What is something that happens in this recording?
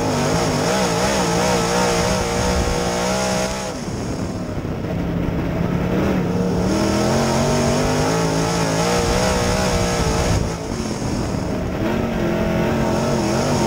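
A race car engine roars loudly from inside the cockpit, revving up and down through the corners.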